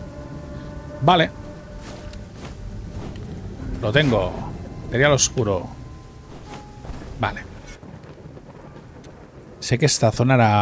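A young man talks with animation into a microphone, in short bursts.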